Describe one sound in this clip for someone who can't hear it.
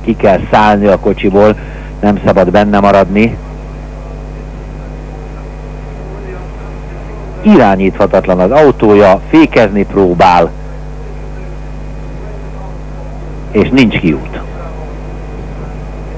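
Racing car engines drone steadily in the distance.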